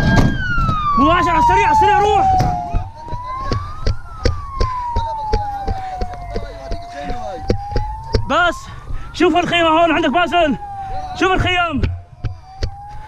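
A man shouts nearby.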